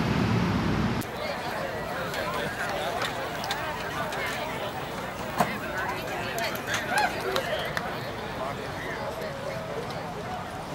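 A crowd murmurs faintly in open-air stands.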